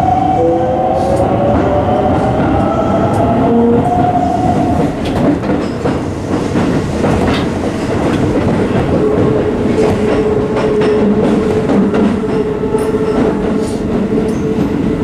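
A train's wheels and motor whine with a shifting pitch.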